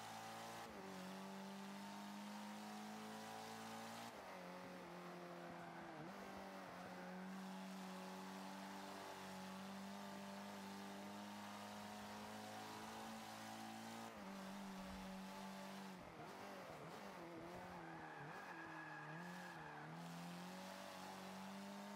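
A racing car engine roars steadily, shifting pitch through gear changes.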